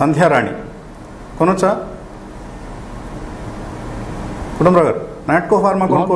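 A middle-aged man speaks calmly into a microphone, in short bursts.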